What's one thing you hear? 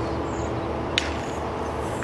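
A bat cracks against a ball outdoors.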